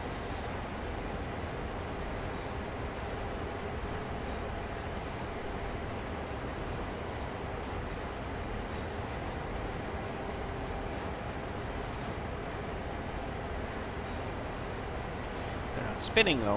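Train wheels clatter on the rails.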